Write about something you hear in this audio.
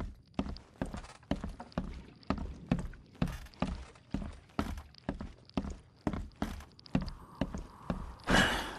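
Footsteps thud slowly and steadily across creaking wooden floorboards.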